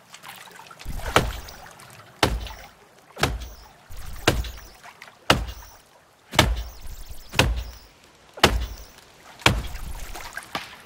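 Heavy wooden thuds knock at a steady pace.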